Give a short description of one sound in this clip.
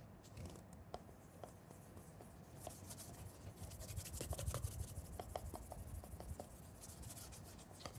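A cloth rubs softly on a leather shoe.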